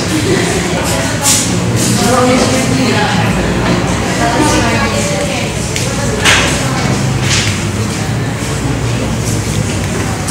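Young women chatter and talk over one another nearby.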